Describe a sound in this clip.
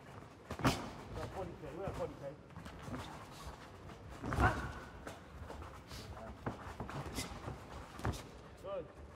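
Boxing gloves thud sharply against a body.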